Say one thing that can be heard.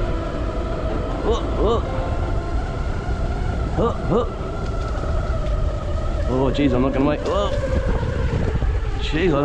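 Footsteps squelch on a wet dirt track.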